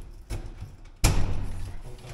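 A metal door latch clunks loudly.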